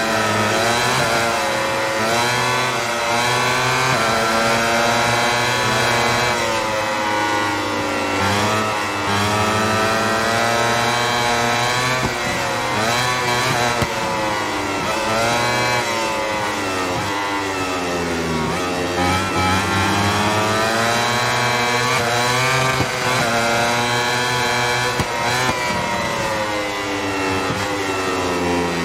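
A racing motorcycle engine screams, rising and falling in pitch as it shifts gears.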